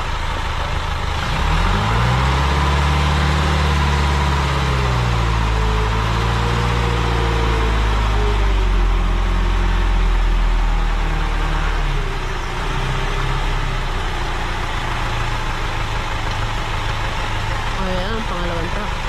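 A truck engine idles steadily outdoors.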